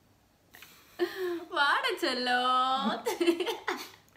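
A young woman laughs and squeals loudly close by.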